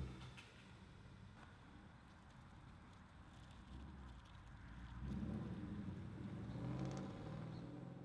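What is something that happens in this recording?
A car drives away down a street.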